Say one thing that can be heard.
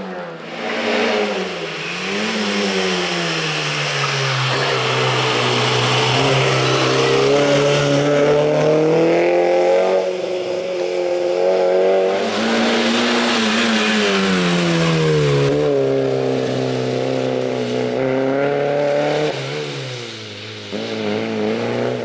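A racing car's engine roars and revs up and down as the car speeds past.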